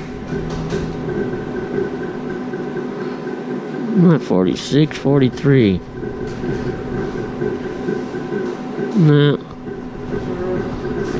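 A gaming machine plays steady electronic background music.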